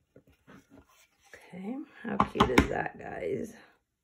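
A wooden frame is set down on a table with a soft thud.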